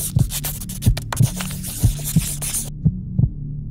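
A felt-tip marker rubs across paper.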